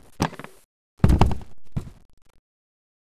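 A swinging door opens in a video game.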